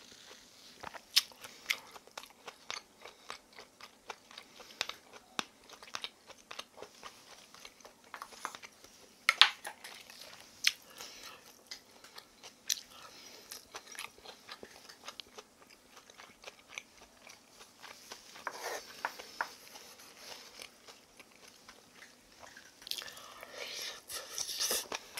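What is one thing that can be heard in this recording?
A young woman chews food close to a microphone with wet smacking sounds.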